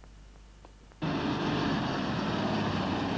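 A car engine roars as the car drives through soft sand.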